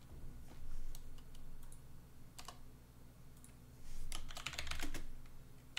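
A keyboard clicks in quick bursts as someone types.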